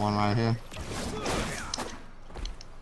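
A sword swooshes through the air in a quick strike.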